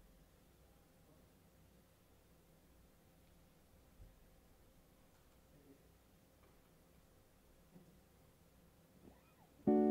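An electric guitar plays softly.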